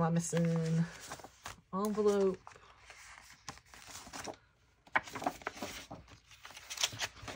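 Paper rustles and slides as sheets are handled.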